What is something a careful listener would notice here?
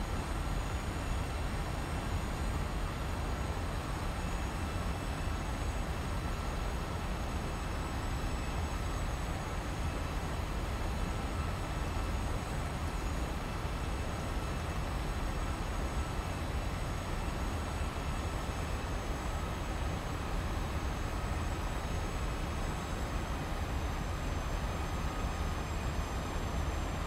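Jet engines roar steadily with a deep rumble.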